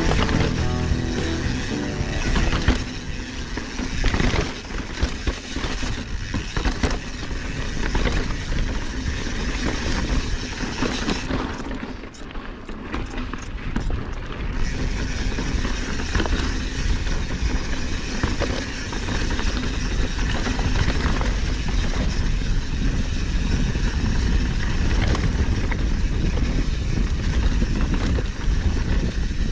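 A bicycle frame clatters over bumps.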